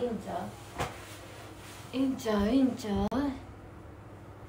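A young woman speaks close to the microphone through a face mask.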